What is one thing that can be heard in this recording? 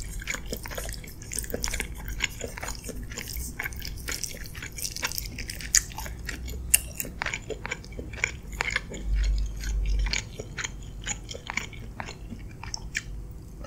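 Wet noodles squelch and slurp up close.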